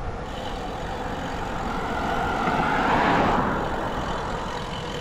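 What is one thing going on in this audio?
A car drives past and fades away.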